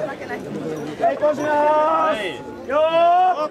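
A man chants loudly in a long drawn-out call nearby.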